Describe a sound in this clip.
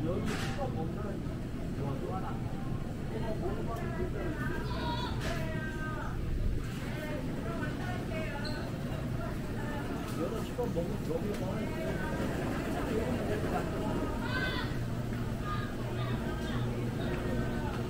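Men and women murmur and chat at a distance in a large echoing hall.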